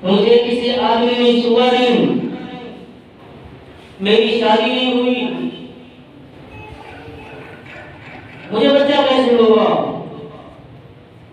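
A man chants in a long, melodic voice through a microphone and loudspeakers, in a room with a slight echo.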